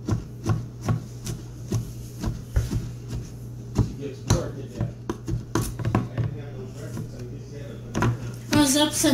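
A knife chops on a cutting board with quick, repeated knocks.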